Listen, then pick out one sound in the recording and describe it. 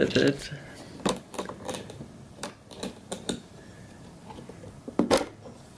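Hard plastic clicks and knocks as it is handled.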